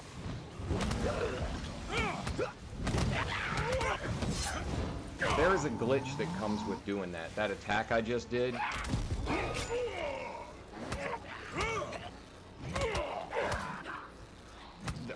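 Heavy weapons clang and thud in a fierce fight.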